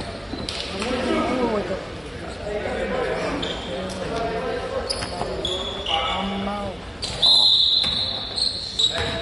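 Nearby spectators chat and call out in an echoing gym.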